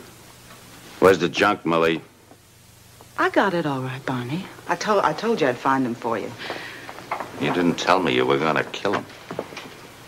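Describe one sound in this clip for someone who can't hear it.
A man speaks in a low, firm voice, close by.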